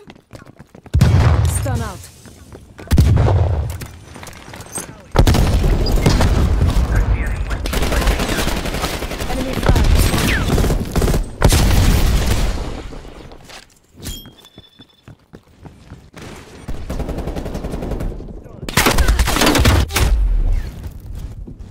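Rapid bursts of gunfire ring out with an echo.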